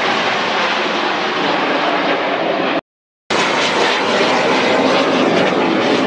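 Jet aircraft in formation roar overhead.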